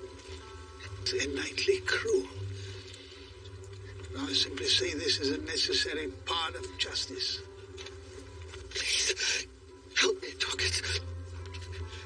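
An elderly man speaks gruffly, close by.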